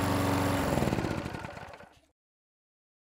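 A power drill whirs through wood and then winds down to a stop.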